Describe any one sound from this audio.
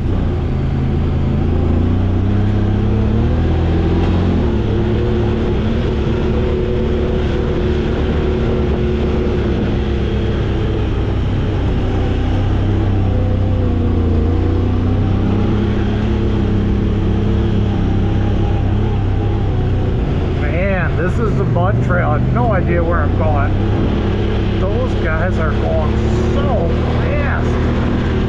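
An off-road vehicle's engine rumbles steadily up close, rising and falling with the throttle.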